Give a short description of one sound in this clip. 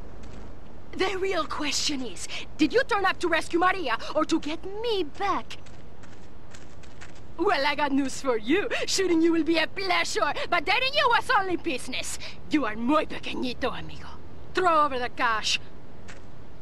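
A young woman speaks sharply and mockingly, close by.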